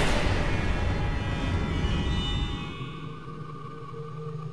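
A burst of magical energy roars and shimmers, then fades.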